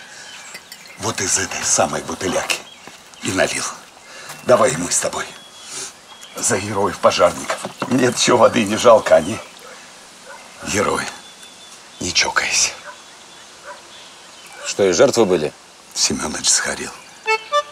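A middle-aged man speaks with animation nearby.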